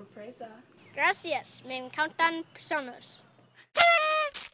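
A young boy speaks close by, cheerfully.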